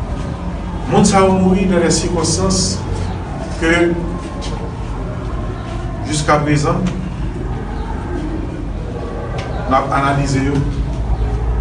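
A middle-aged man speaks loudly and with emphasis, close by.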